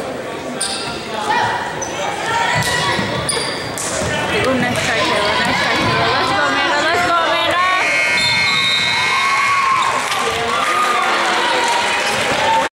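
A crowd of spectators murmurs and cheers.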